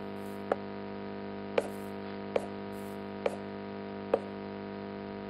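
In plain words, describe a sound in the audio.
Wooden blocks are placed with short, soft knocks.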